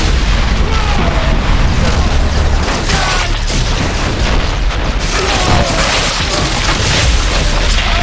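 Gunfire crackles in a battle.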